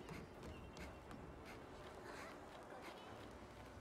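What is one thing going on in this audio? Footsteps run lightly across the ground.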